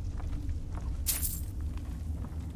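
Coins jingle briefly as a purse is picked up.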